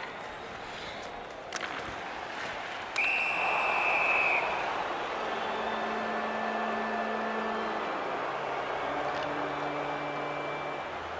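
A crowd roars and cheers in a large arena.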